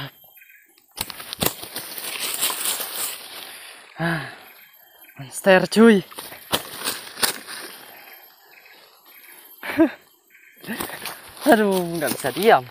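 Dry leaves rustle and crunch.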